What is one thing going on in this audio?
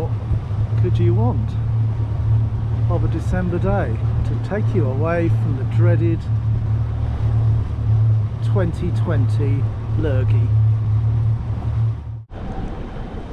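A boat engine hums steadily and low.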